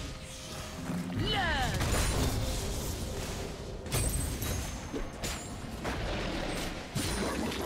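Game spell effects whoosh and crackle in a fast fight.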